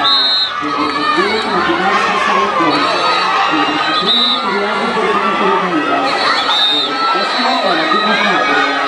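Swimmers splash and kick hard through the water.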